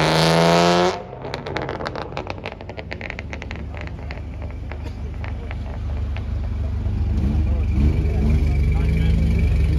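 A car engine idles with a low rumble close by.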